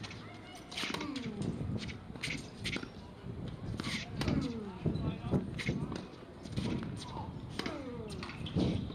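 Tennis rackets strike a ball back and forth.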